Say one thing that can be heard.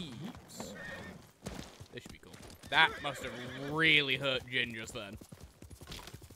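A horse's hooves thud on the ground at a gallop.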